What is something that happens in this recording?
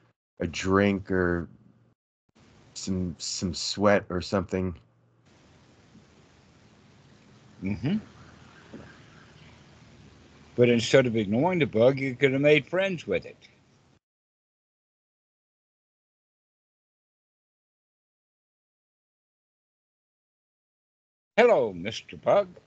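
A young man talks calmly over an online call.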